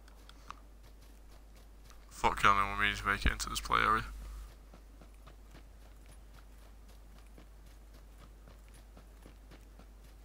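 Footsteps rustle softly through dry grass.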